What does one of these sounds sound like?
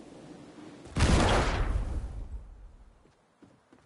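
A loud explosion bursts and rumbles away.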